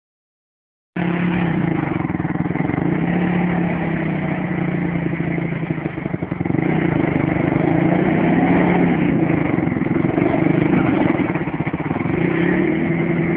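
A quad bike engine revs and idles roughly close by.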